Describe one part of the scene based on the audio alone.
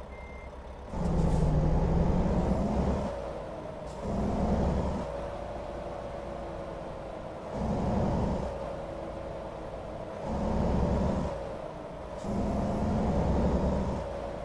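A truck engine revs up and down as the truck drives.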